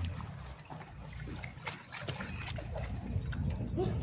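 A magnet on a rope splashes into the water.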